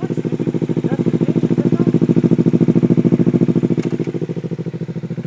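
A motorcycle engine idles with a deep, throbbing burble close by.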